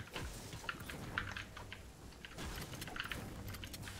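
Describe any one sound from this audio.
A pickaxe knocks against walls.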